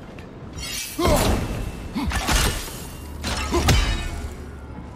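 A spear whooshes through the air and strikes stone.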